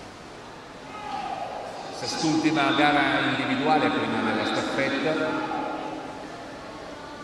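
A crowd in the stands cheers loudly, then dies down.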